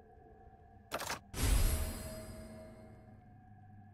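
A heavy metallic clunk rings out and fades.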